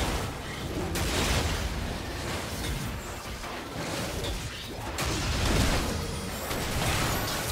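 Magic spells whoosh and crackle in a fantasy battle game.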